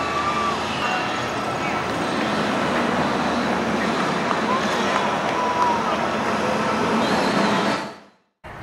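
A roller coaster train rumbles and roars along its track.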